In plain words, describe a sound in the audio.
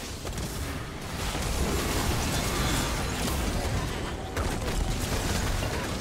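Spell effects whoosh, crackle and burst in a fast battle.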